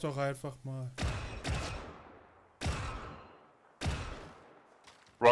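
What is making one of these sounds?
Laser rifle shots crack in short bursts.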